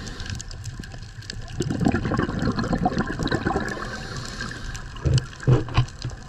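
Water rushes and murmurs with a muffled underwater rumble.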